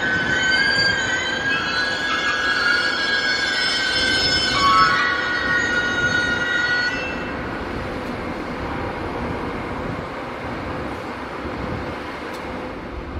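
A train rumbles past on nearby tracks.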